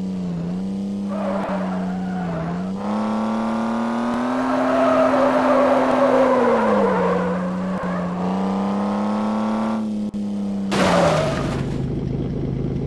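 Tyres screech on pavement in bursts.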